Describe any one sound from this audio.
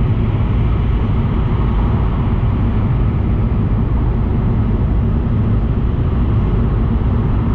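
A train rumbles steadily as it rolls along.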